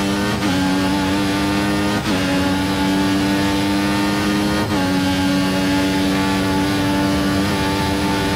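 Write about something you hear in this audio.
A racing car engine screams at high revs, dropping briefly with each gear change.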